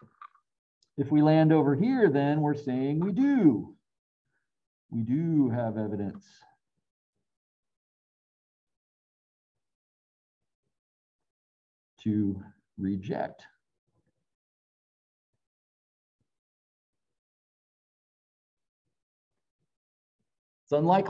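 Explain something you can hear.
A middle-aged man speaks calmly in short bursts through a microphone, as if on an online call.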